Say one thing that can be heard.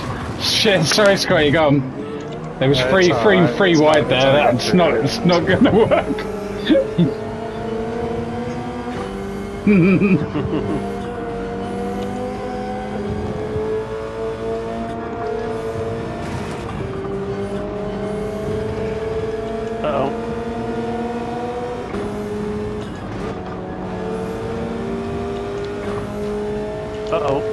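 A racing car engine roars, climbing in pitch and dropping with each gear change.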